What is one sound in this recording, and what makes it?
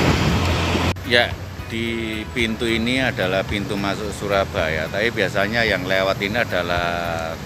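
A man speaks close up with animation.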